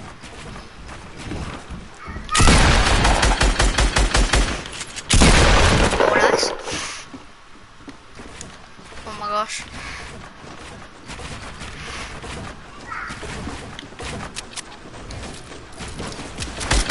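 Wooden building pieces snap into place with quick clattering knocks.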